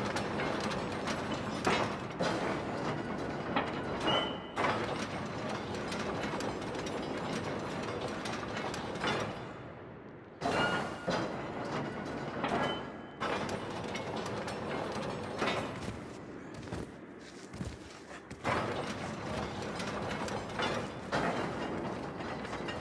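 A metal lift cage creaks and rattles as it moves.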